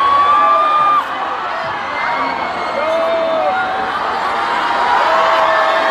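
A woman sings loudly through a loudspeaker.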